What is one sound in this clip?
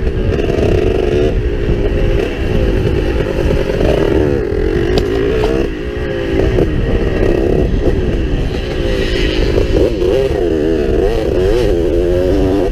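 Wind rumbles loudly against a moving rider.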